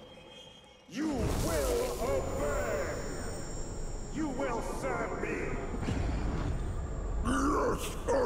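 A man speaks in a deep, menacing voice.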